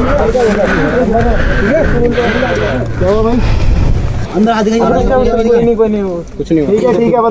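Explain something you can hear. Several young men talk over each other with animation, close by.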